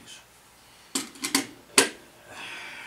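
A plastic part clatters down onto a wooden surface.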